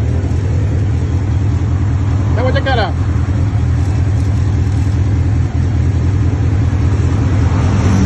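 A young man talks on a phone close by.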